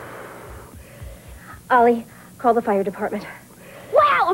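A boy speaks in surprise.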